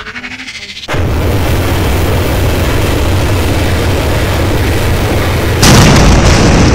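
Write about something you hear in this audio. An energy blast roars and crackles steadily.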